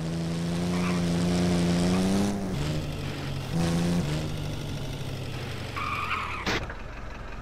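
A car engine hums steadily, rising and dropping in pitch.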